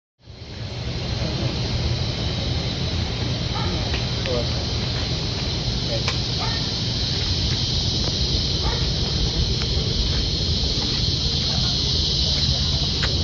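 Steady wind rushes past outdoors.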